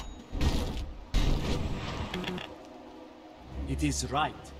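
Magic spells whoosh and burst during a fight.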